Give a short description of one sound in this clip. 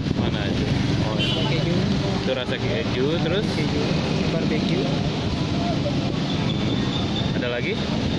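Plastic packets crinkle as a hand picks them up.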